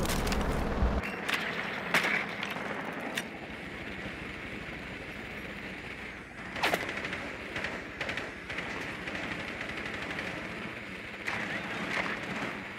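A small motor whirs as a little wheeled device rolls along.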